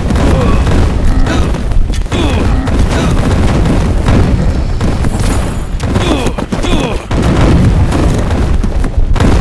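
Weapons clash and thud in a chaotic battle.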